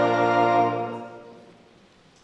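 A congregation sings a final long note in an echoing hall.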